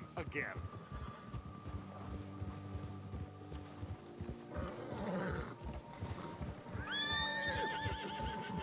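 Horse hooves thud steadily on snow.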